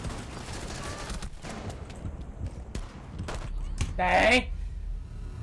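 Gunshots crack from a game.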